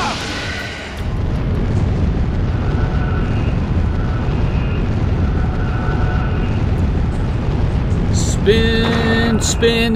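A glowing magical orb hums with a low, steady drone.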